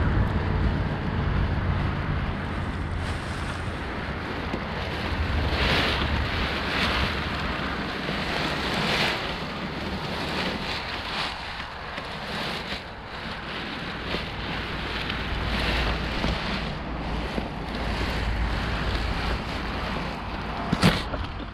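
Wind rushes steadily past a microphone outdoors.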